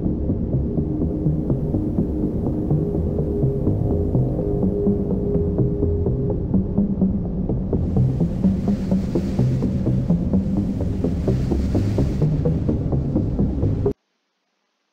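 Menu music plays steadily, then cuts off abruptly.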